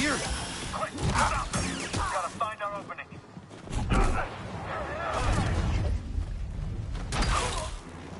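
A lightsaber hums and swishes through the air.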